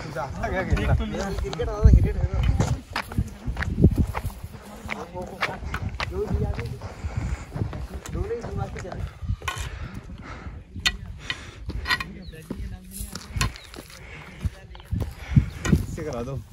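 Footsteps scuff on bare rock.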